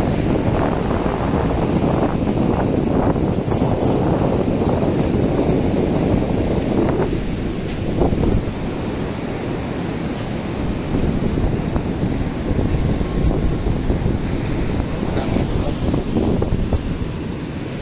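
Waves break and wash onto a beach nearby.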